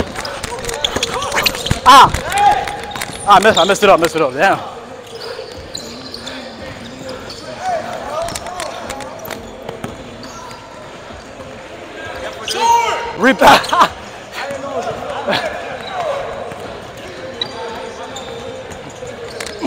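Young men shout and call out during play.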